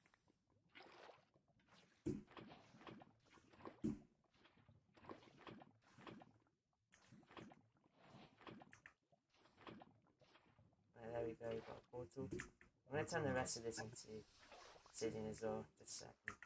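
Water splashes as a bucket is poured out.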